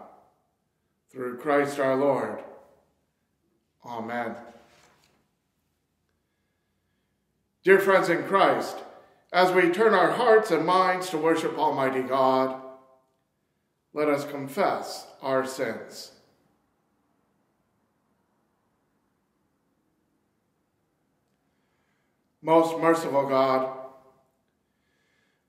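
A man speaks slowly and solemnly into a microphone, in phrases with long pauses.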